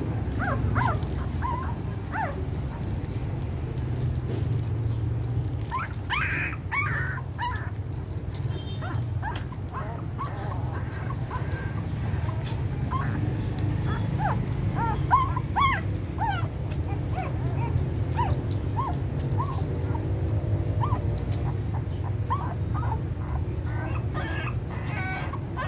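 Puppies whimper and squeak in short high cries.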